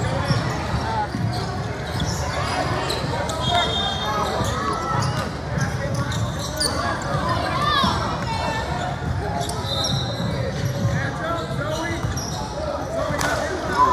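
Girls shout and call out across a large echoing gym.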